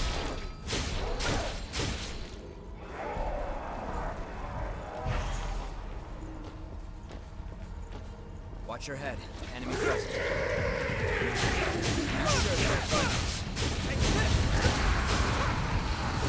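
Blades slash and clang in a fight.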